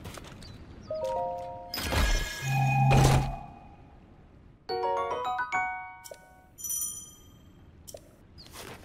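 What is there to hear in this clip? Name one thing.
Short bright chimes ring out one after another.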